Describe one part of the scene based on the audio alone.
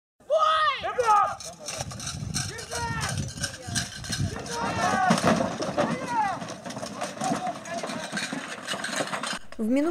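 A crowd of men shout and roar as they charge.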